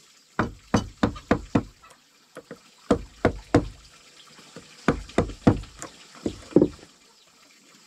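A wooden mallet knocks sharply on a chisel in quick bursts of blows.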